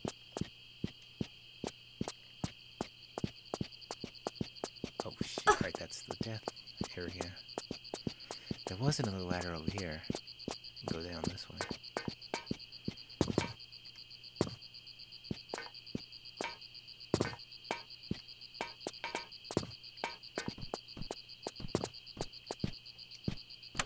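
Footsteps patter quickly and steadily on a hard floor.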